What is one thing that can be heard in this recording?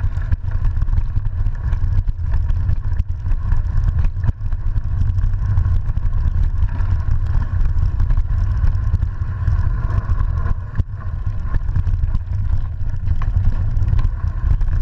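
Wind rumbles loudly across a microphone.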